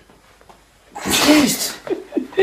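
A young woman speaks loudly in reply.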